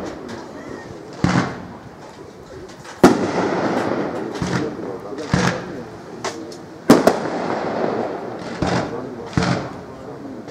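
Fireworks crackle and fizz after bursting.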